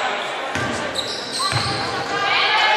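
A basketball bounces with dull thumps.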